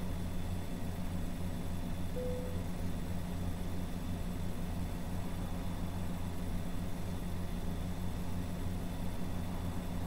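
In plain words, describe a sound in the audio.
Tyres roll on the highway with a steady low rumble.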